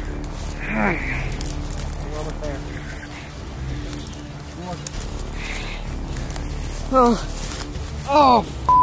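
Leafy plants rustle and swish as someone pushes through them on foot.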